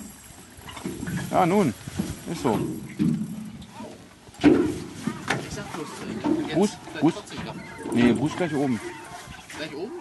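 A man speaks with animation nearby.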